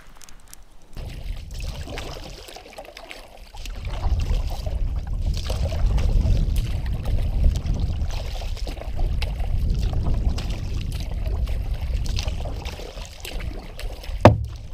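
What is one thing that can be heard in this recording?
Water laps gently against a canoe.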